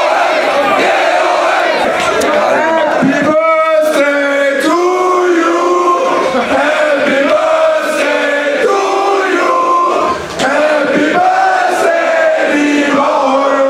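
A man sings loudly into a microphone over loudspeakers, heard outdoors.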